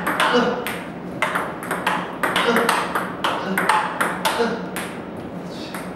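A table tennis ball is struck and bounces quickly on a table.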